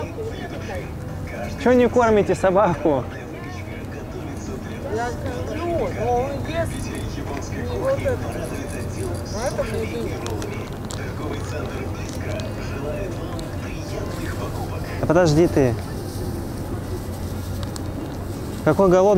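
A plastic wrapper crinkles close by.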